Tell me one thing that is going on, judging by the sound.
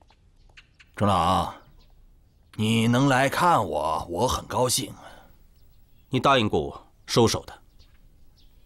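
An elderly man speaks calmly and warmly, close by.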